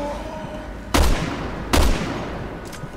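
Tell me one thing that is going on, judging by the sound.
Rifle shots ring out loudly.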